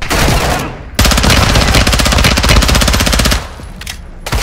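A submachine gun fires a rapid, loud burst.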